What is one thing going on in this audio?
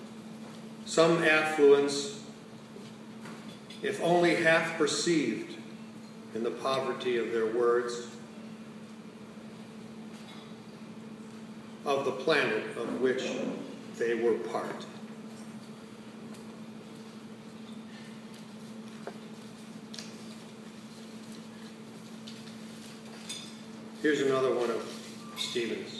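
An older man speaks slowly and calmly through a microphone, with pauses.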